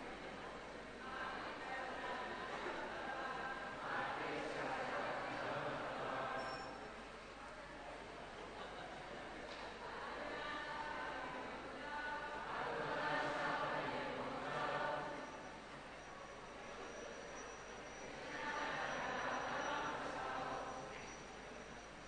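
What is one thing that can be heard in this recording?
A large crowd of men and women chants together in unison in an echoing hall, in rising and falling phrases.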